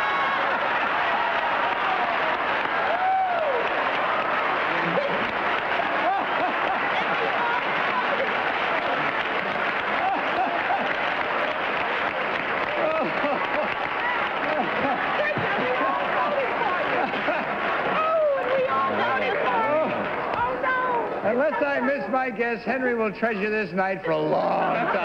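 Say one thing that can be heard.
An audience laughs loudly throughout.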